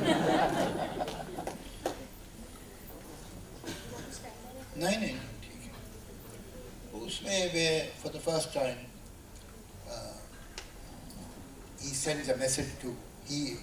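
An elderly man speaks into a microphone, calmly and with pauses.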